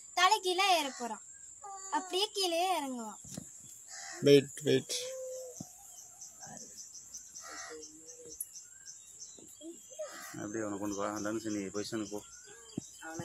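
Children talk excitedly close by, outdoors.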